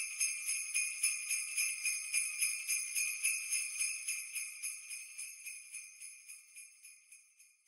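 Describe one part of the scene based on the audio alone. Sleigh bells jingle in a quick, steady rhythm and slowly fade.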